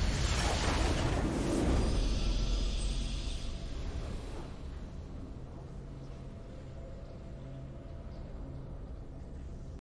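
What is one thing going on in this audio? A triumphant game fanfare plays and slowly fades.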